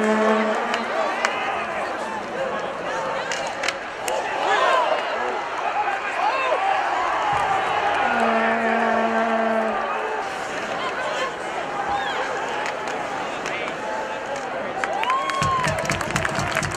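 A large crowd cheers and shouts in an echoing arena.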